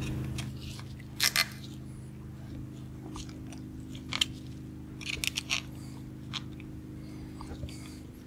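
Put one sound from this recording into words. Metal parts click and clink as they are handled.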